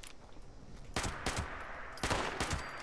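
A gun fires several loud shots.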